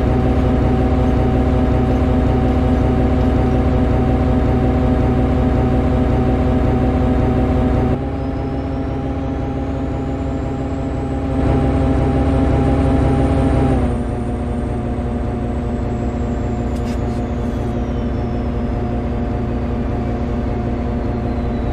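A train engine hums steadily and rumbles along the rails.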